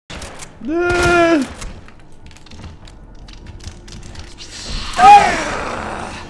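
A pistol fires loudly.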